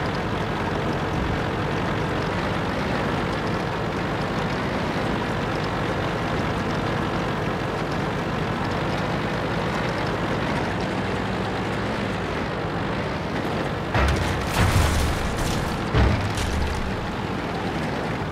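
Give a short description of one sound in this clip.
An armoured vehicle's engine rumbles steadily as it drives.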